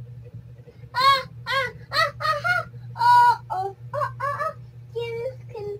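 A young girl speaks nearby in a high, lively voice.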